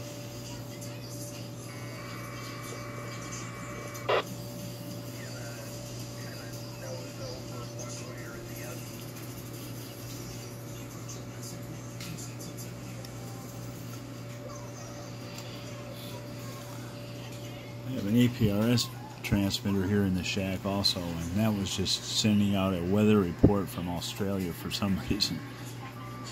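A radio set hums steadily and quietly.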